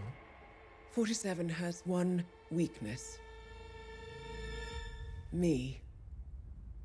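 A young woman speaks quietly over the phone.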